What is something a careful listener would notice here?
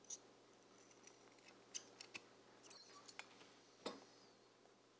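Scissors snip through thin material.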